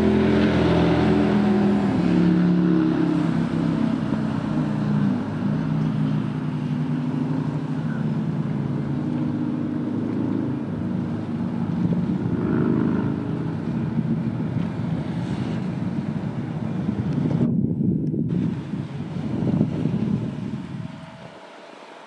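A boat engine hums steadily nearby.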